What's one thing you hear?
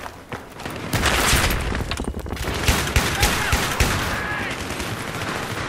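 A rifle fires in rapid bursts, with loud sharp shots.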